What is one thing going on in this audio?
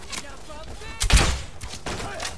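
A crossbow fires with a sharp snap.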